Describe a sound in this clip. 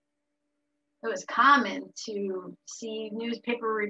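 A middle-aged woman speaks with animation over an online call.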